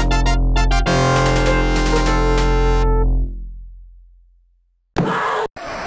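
Upbeat electronic game music plays, then fades away.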